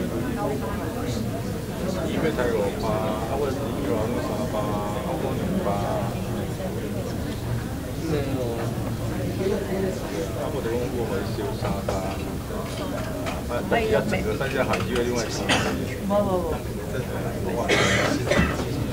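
Several men and women chatter at once in a room.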